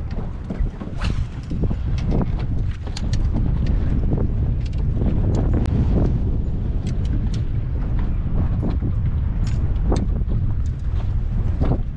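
A fishing reel clicks and whirs as line is cranked in.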